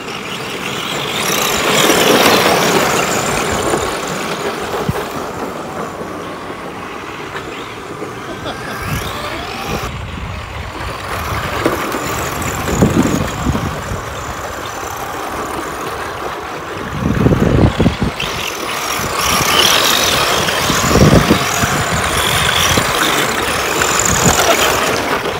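Tyres of model cars scrape and skid across loose dirt.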